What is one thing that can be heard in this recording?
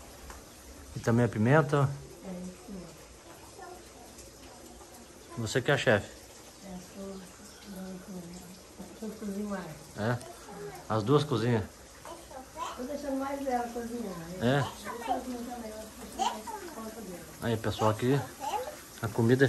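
A woman talks calmly and cheerfully nearby.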